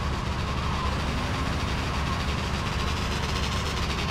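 A motorbike engine buzzes as it approaches.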